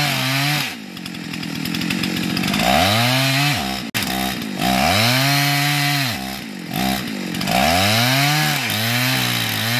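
A chainsaw engine roars, rising and falling in pitch as it cuts into a tree trunk.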